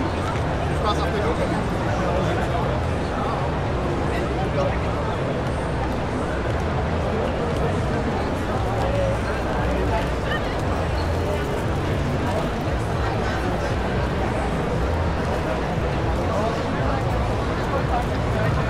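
A crowd of men and women chatters all around in a large echoing hall.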